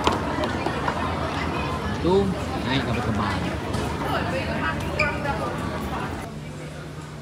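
A crowd chatters in a large, echoing hall.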